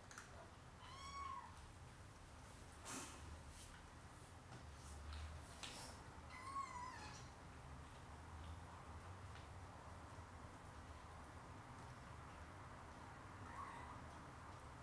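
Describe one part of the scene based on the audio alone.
A kitten mews softly a few times.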